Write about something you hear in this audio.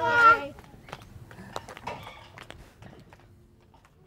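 A small child's footsteps patter on paving stones.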